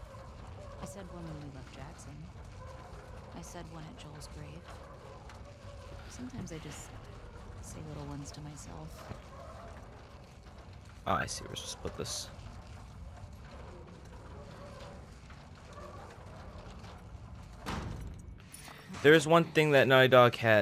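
Metal cart wheels rattle and roll across a hard floor.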